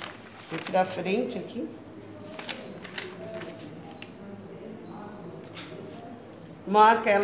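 A stiff cardboard pattern rustles and slides over fabric.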